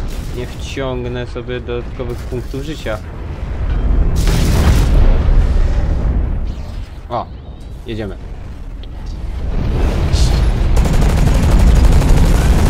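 A heavy machine rumbles low and steadily.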